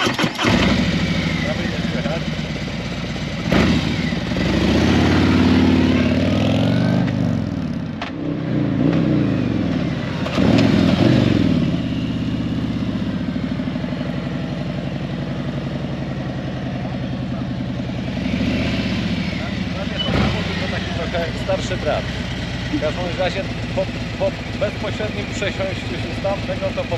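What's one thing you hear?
A motorcycle engine rumbles and revs loudly.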